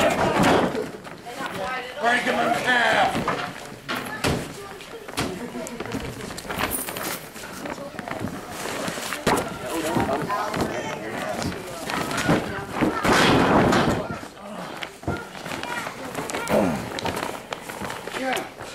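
A body thuds onto a ring mat.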